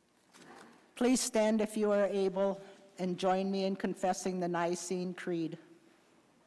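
An elderly woman sings slowly through a microphone in an echoing hall.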